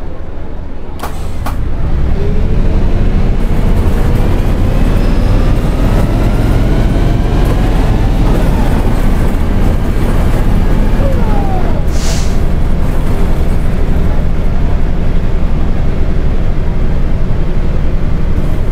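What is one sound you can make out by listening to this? A bus engine hums low and rises as the bus pulls away and speeds up.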